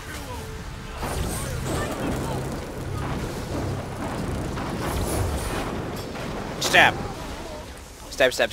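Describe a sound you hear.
Magic spells crackle and burst with electric zaps.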